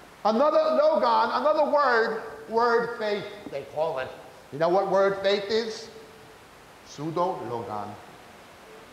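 A man speaks with emphasis into a microphone.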